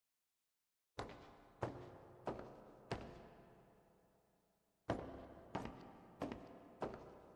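Slow footsteps thud and echo on a hard floor.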